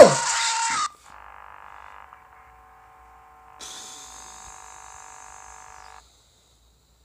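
Harsh electronic static hisses steadily.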